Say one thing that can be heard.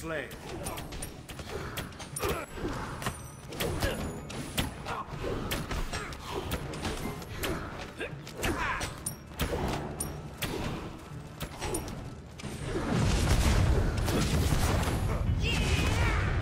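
Magic attacks crack and zap in quick bursts.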